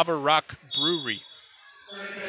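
A referee's whistle trills sharply.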